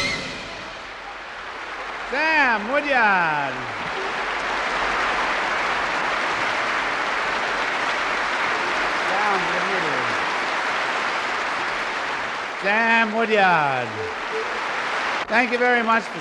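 Cymbals crash and hiss under fast drumming.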